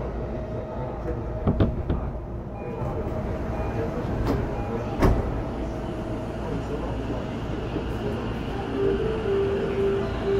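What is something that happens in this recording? An electric train rumbles steadily along the tracks.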